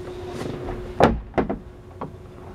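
Knuckles knock on a hollow panel.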